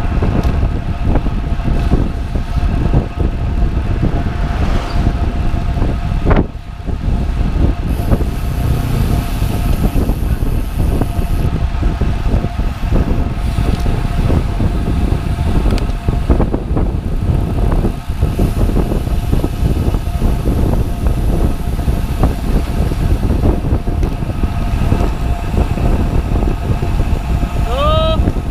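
Wind roars loudly across a moving microphone outdoors.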